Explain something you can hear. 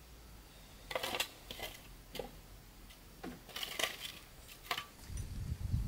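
A hoe scrapes against the ground.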